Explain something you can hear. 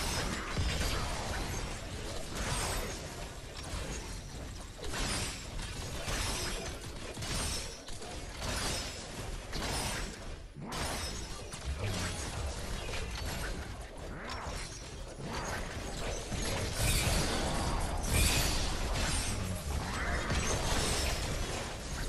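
Game explosions and magic blasts crackle and boom.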